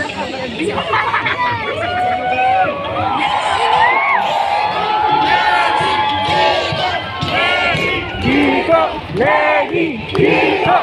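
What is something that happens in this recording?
Men and women in the crowd chant and sing together.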